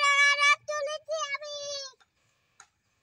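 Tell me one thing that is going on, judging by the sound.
A young child calls out in a high, sing-song voice close by.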